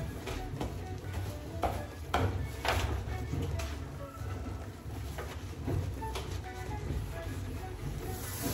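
A sponge scrubs and squeaks against a shower tray.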